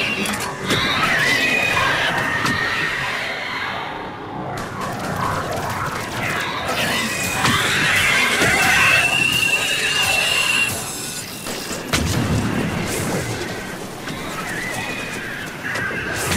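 Electric energy crackles and hums.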